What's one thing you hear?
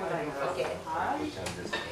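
A young woman slurps noodles.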